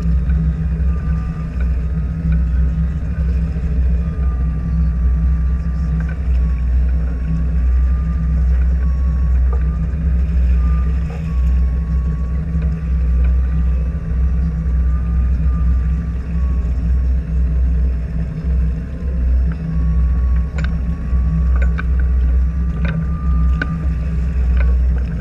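A boat engine hums steadily nearby.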